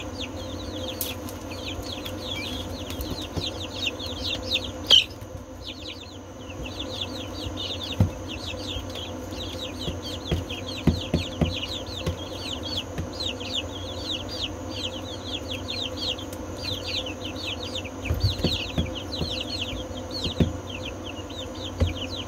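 Many chicks peep shrilly and constantly, close by.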